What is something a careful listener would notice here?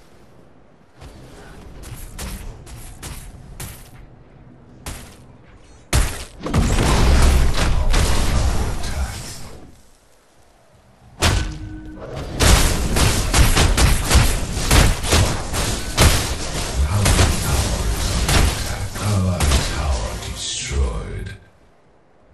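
Weapon shots and impacts crackle in bursts during a fight.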